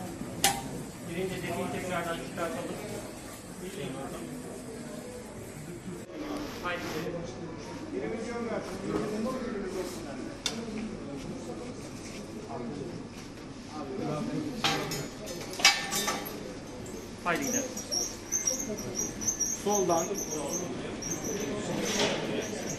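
Men and women talk over one another nearby, in urgent tones.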